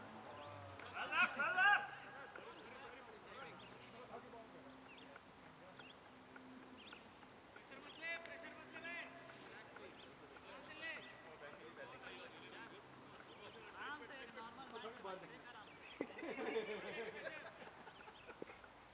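Men shout and call out across an open field in the distance.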